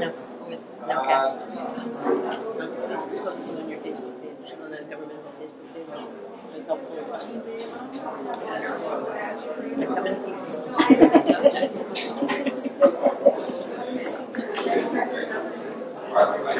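A crowd of men and women chatter all around in a busy room.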